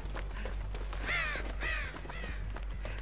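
A crow caws nearby.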